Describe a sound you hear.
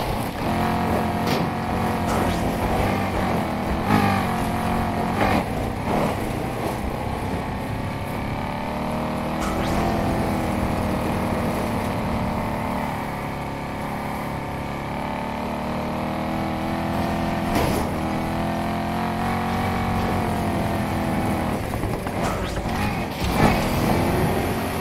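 A powerful car engine roars at high speed, rising and falling in pitch as it shifts gears.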